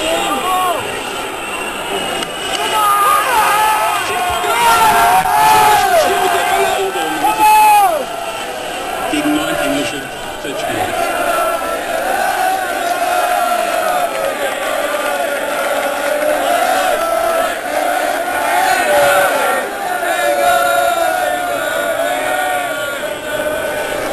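A large crowd of men and women sings and chants loudly outdoors.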